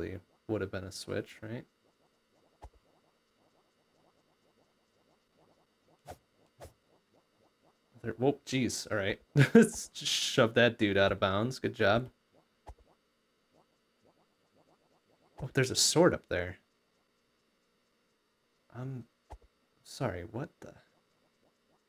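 A man talks with animation into a nearby microphone, in short bursts.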